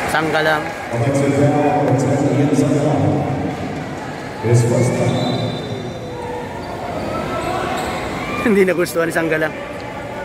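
A crowd of spectators chatters and cheers in a large echoing arena.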